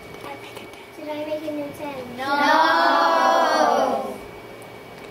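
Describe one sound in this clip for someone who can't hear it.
A young girl speaks nearby.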